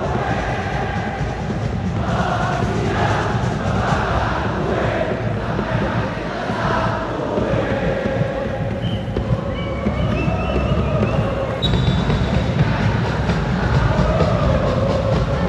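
A large crowd sings and chants loudly together in a big open stadium.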